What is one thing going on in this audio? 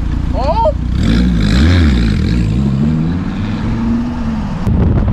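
A sports car engine revs up and down loudly.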